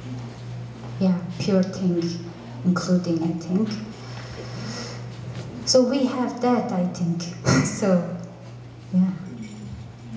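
A young woman speaks calmly into a microphone, heard through a loudspeaker.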